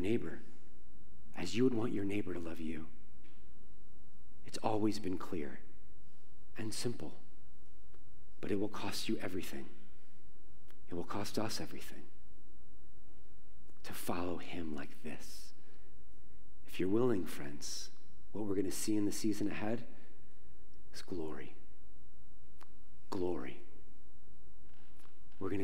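A man speaks with animation through a microphone in a large echoing hall, pausing often.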